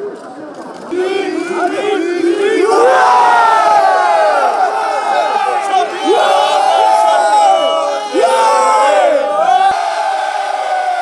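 A crowd of men cheers and chants loudly.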